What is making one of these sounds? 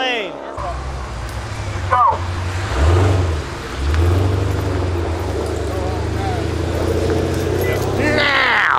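A motorcycle engine idles and revs loudly nearby.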